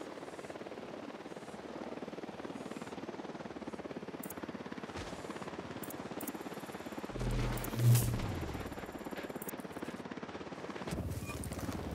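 A small drone whirs steadily overhead.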